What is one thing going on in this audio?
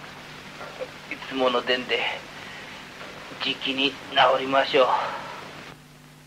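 An elderly man speaks weakly and hoarsely, close by.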